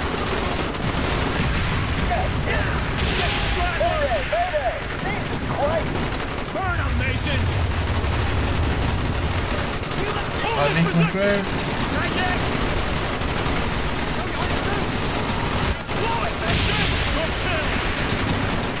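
A young man speaks into a microphone close by.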